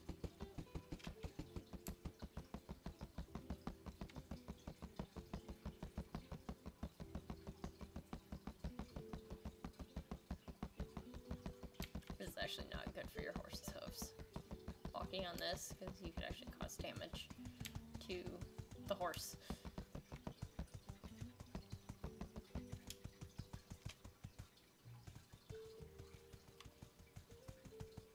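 A horse's hooves clop steadily at a trot.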